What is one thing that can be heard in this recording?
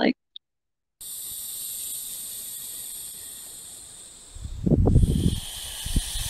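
A rattlesnake rattles with a steady, high buzzing hiss.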